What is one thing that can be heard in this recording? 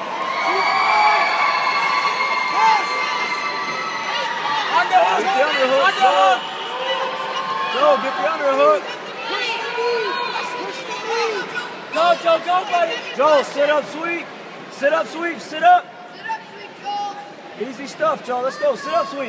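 Men and women in a crowd shout encouragement loudly in a large echoing hall.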